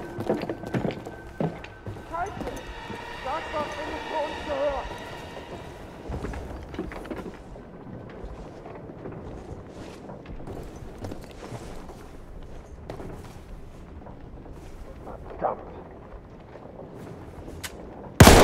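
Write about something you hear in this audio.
Footsteps thud and creak on wooden boards.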